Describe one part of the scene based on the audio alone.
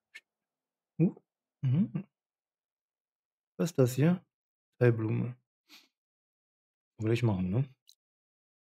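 A man speaks casually into a close microphone, in short bursts.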